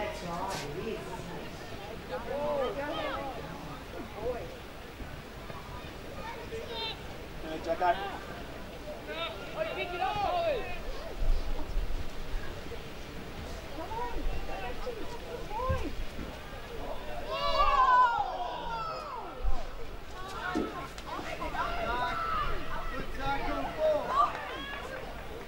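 Young girls shout and call out to each other outdoors on an open field.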